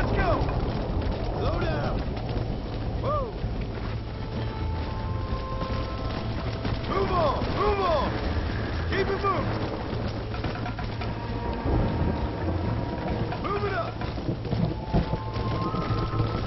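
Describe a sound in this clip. A horse gallops steadily over grass, hooves drumming.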